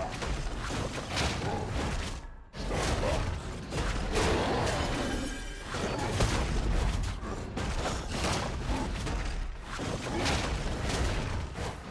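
Magic spells whoosh and crackle in a game fight.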